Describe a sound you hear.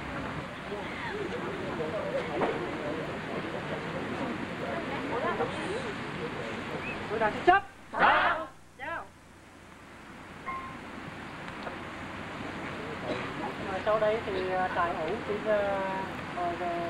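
A crowd of young people chatters.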